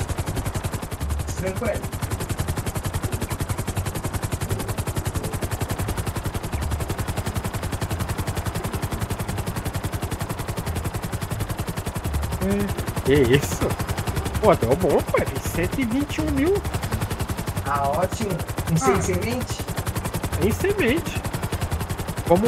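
A helicopter's rotor chops in a fast, steady beat.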